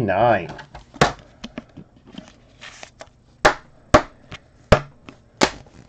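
A plastic card holder clicks and taps in hands.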